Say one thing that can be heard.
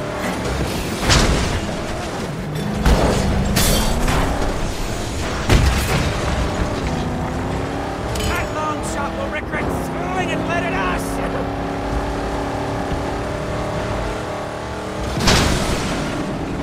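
Wooden beams crash and splinter as a car smashes through them.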